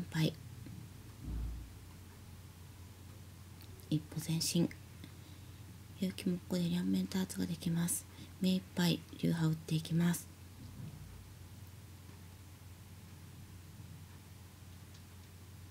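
Mahjong tiles click as they are set down on a table.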